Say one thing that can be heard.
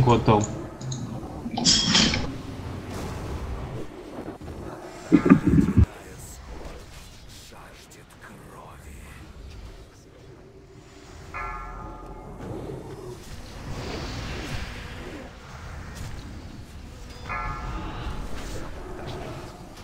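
Spell effects crackle and boom in a fantasy game battle.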